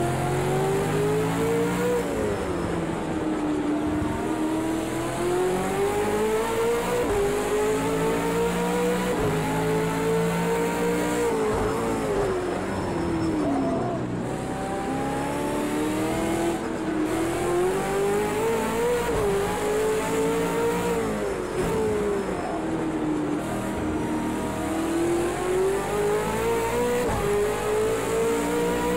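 A race car engine roars loudly, revving up and down through the gears.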